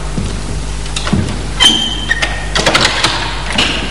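A wooden door opens and closes.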